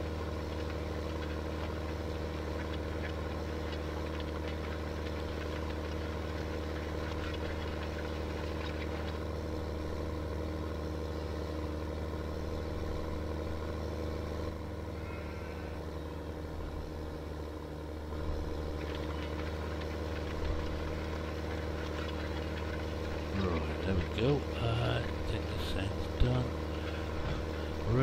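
A tractor engine hums steadily from inside the cab.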